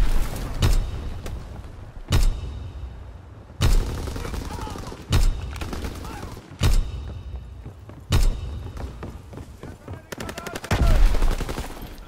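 A bolt-action rifle clicks as it is reloaded.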